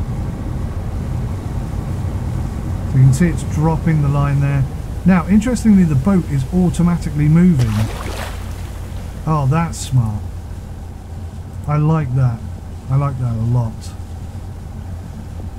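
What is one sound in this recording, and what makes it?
Sea water laps against a boat's hull.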